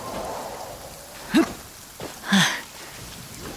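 Footsteps run quickly across rock and grass.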